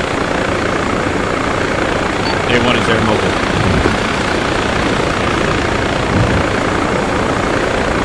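Wind rushes loudly past an open helicopter door.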